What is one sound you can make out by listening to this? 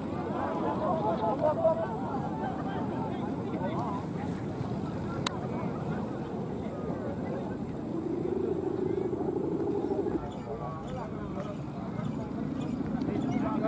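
A crowd of people talk and call out outdoors.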